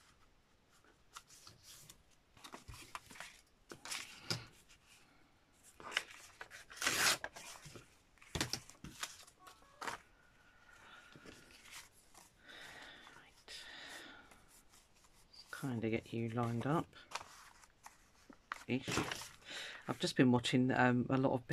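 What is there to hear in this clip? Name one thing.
Paper rustles and crinkles as it is handled and shuffled.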